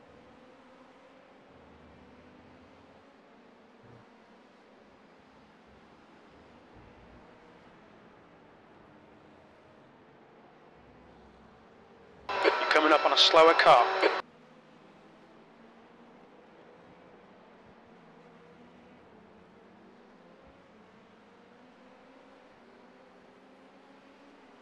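A racing car engine drones faintly and steadily.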